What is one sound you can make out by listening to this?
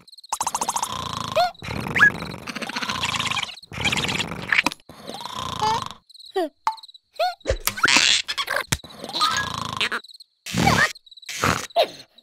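A small cartoon creature squeaks and chatters.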